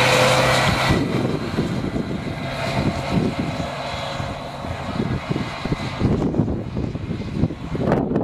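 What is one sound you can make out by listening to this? A bus drives away and fades into the distance.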